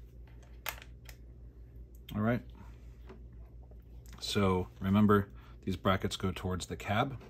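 Plastic parts click and tap as hands handle them.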